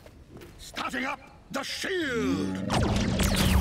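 A cartoonish male voice speaks excitedly.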